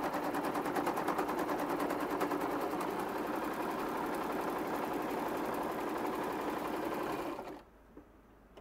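A sewing machine runs fast, stitching with a rapid whirring clatter, then stops.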